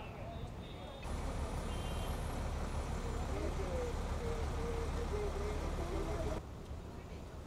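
A diesel city bus rumbles past.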